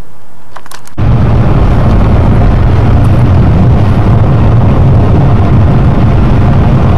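A car engine hums and tyres roar steadily on the road from inside the car.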